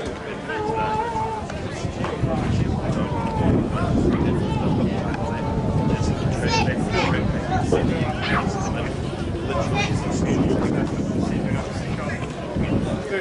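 Rugby players shout to each other across an open field.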